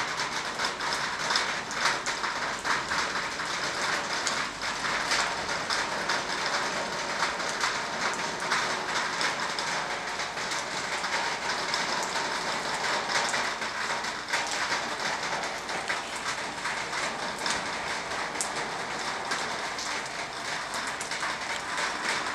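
Raindrops patter and splash on a wet paved path.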